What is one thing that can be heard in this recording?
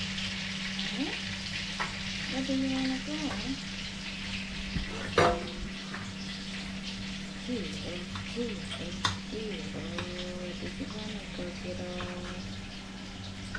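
A small monkey squeaks and chirps in short high calls.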